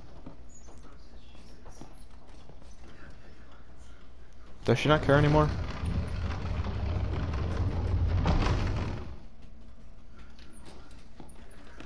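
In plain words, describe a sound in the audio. Footsteps creak on wooden floorboards.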